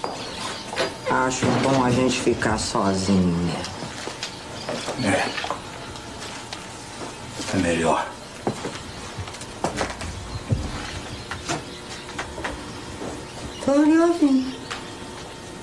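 A woman answers in a drawling, mocking voice.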